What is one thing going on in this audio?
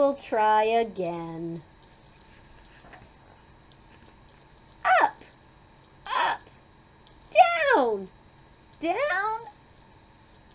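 A woman reads aloud close by in a lively, expressive voice.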